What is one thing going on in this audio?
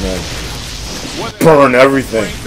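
A crackling energy beam fires and hisses.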